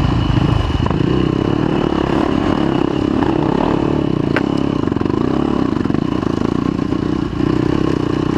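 A dirt bike engine buzzes loudly close by.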